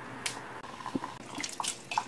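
Broth bubbles and simmers in a pot.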